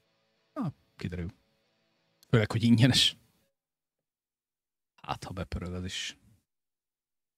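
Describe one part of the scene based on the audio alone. A man talks into a close microphone in short bursts, with animation.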